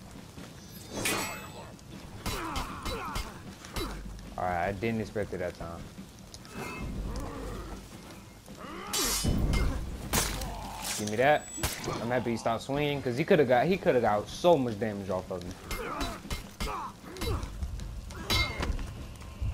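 Metal blades clash and ring sharply.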